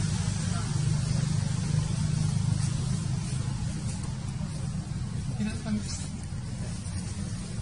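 Leaves rustle as a young monkey pulls at them.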